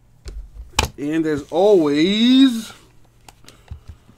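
A card pack's wrapper crinkles as it is torn open.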